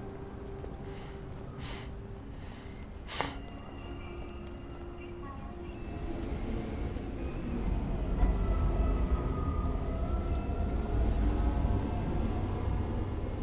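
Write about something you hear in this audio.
A low steady rumble of city traffic fills the background.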